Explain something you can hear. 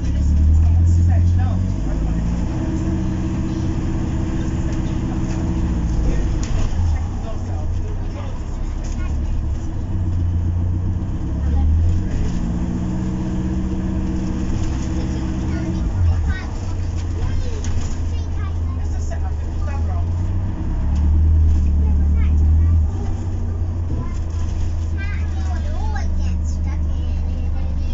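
A bus engine hums and whines as it drives.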